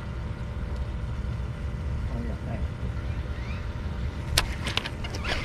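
Water laps gently against a boat hull.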